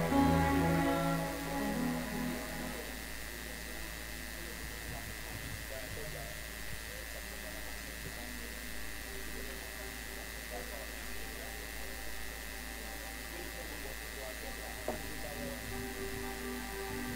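Many feet shuffle and step on a hard floor.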